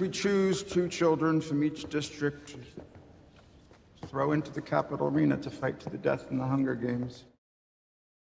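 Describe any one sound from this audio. A man speaks forcefully in a large echoing hall.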